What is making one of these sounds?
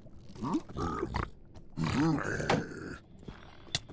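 A sword strikes a creature with sharp thwacks.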